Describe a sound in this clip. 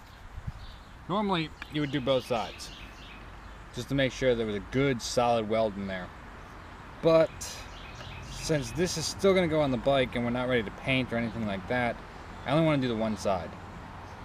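A man speaks casually, close by.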